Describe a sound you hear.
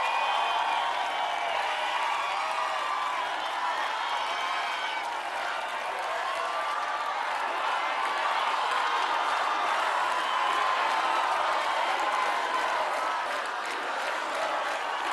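A large crowd sings along loudly in a big echoing hall.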